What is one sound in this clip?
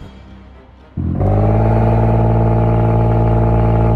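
A racing car engine idles with a steady loud rumble.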